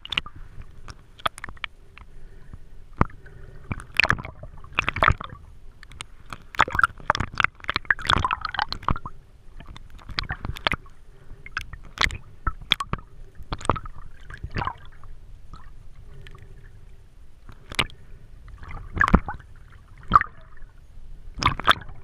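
Water swishes and bubbles close by, heard underwater.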